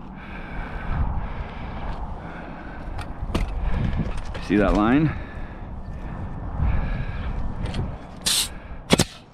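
Stiff roofing shingles scrape and rustle under gloved hands.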